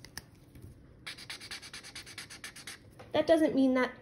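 A marker scribbles quickly on paper.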